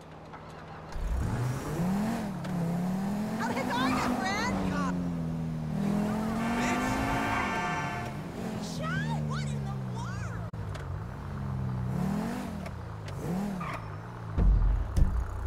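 A car engine revs up and down as it drives off.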